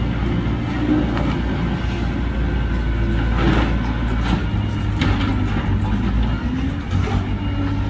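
A heavy engine idles with a steady low rumble.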